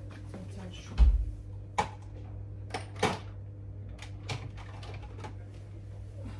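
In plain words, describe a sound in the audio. Things clatter and knock as a cupboard is rummaged through.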